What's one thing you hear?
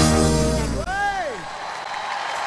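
A band plays a final held chord that ends with a swooping slide.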